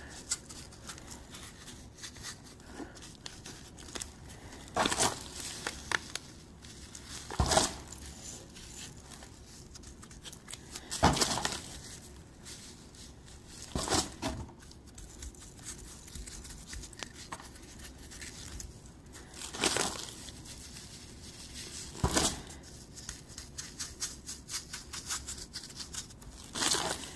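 Grit rustles and crunches as hands press it onto a handle.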